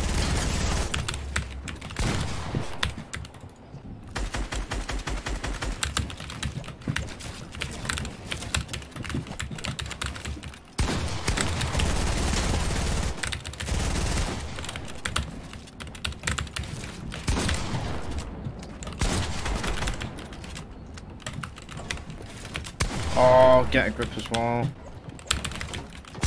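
Building pieces snap into place with rapid wooden and stone clacks.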